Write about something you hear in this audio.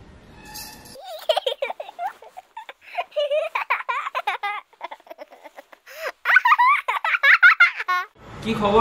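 A young woman speaks with animation, heard through a phone.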